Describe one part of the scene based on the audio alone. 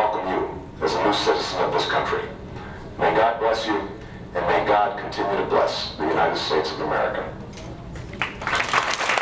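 A man speaks calmly over a loudspeaker.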